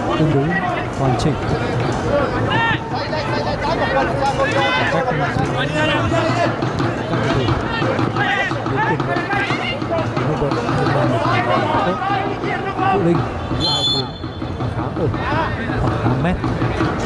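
A large stadium crowd cheers and chants loudly throughout.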